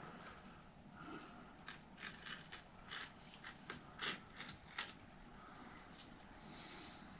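Bar tape rustles and crinkles as it is wrapped around a handlebar.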